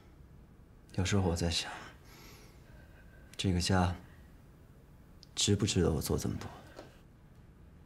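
A young man speaks quietly and seriously, close by.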